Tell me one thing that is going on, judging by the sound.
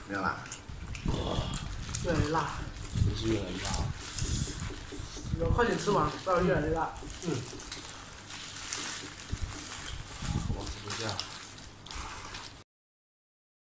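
Paper wrappers rustle and crinkle.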